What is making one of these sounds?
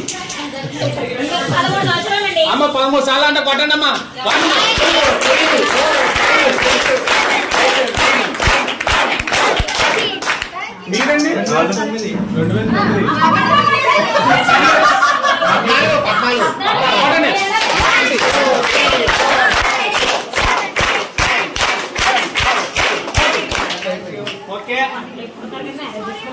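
A crowd of women and children talks and cheers loudly nearby.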